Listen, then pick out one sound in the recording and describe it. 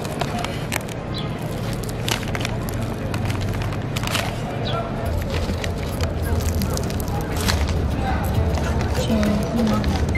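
Flaky pastry crackles as hands tear it apart.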